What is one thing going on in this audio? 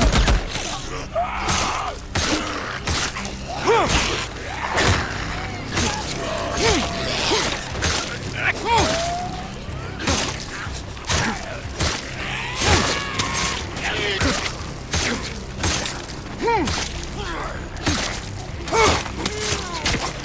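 Melee blows thud and smack repeatedly.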